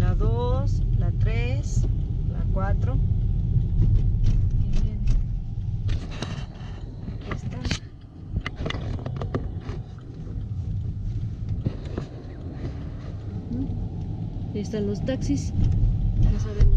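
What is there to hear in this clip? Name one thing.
A car engine rumbles low and steady as the car rolls slowly.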